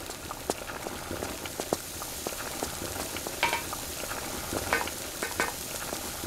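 Footsteps patter on a stone floor as someone runs.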